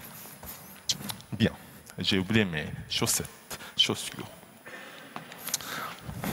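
Footsteps thud on a wooden floor in an echoing hall.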